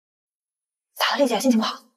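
A young woman asks a question calmly, close by.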